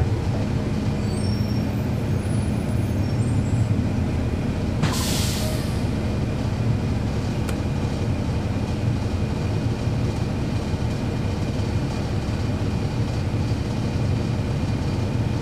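A bus engine idles nearby with a steady low rumble.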